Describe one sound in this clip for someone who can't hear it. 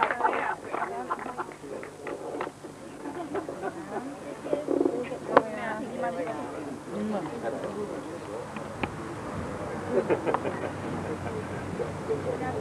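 Women talk quietly nearby.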